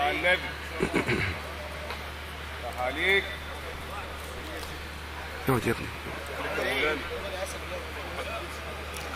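A man chants melodically into a microphone in short phrases, heard through a loudspeaker.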